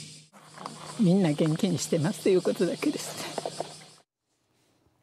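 An elderly woman speaks gently and close by.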